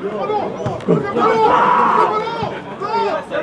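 A crowd of spectators cheers loudly.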